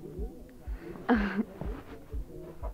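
A young woman laughs softly.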